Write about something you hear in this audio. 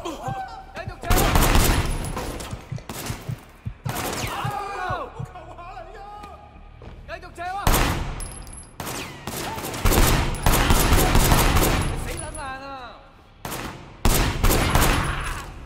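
Gunshots fire in rapid bursts, echoing in a large hall.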